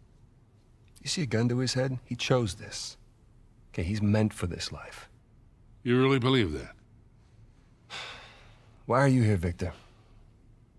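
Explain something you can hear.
A younger man speaks in a low, earnest voice, close by.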